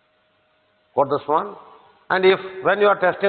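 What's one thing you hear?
An elderly man lectures calmly into a microphone.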